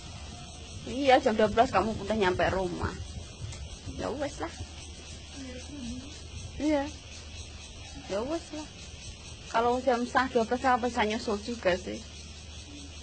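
A young woman speaks nearby in short bursts.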